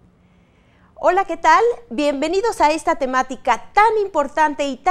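A woman speaks with animation into a microphone, close by.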